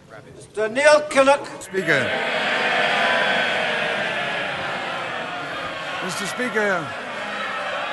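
A man speaks loudly over a microphone.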